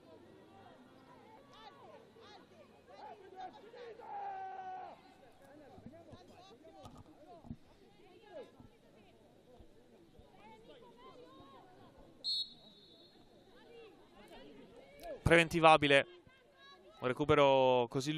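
Voices chatter in a crowd outdoors throughout.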